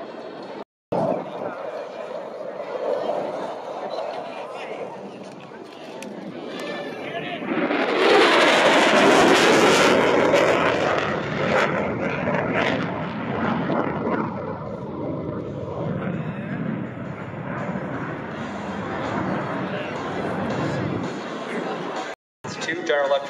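A jet engine roars overhead, swelling loudly as the jet passes and then fading into a distant rumble.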